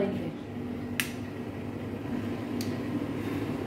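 A gas stove knob clicks.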